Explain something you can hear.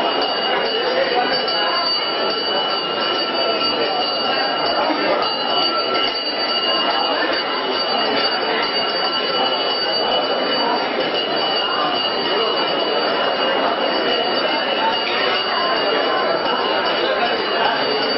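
A crowd of men murmurs close by.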